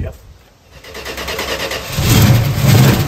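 A car engine cranks and starts.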